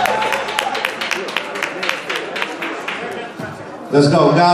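An audience claps and cheers in a large room.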